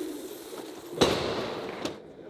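A body thuds onto a hard floor.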